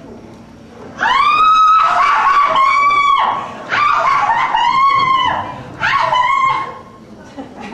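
A woman sings in a high, wavering voice.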